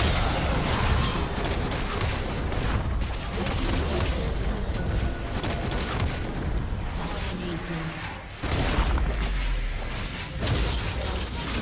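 Magic spells blast and crackle in a fast fight.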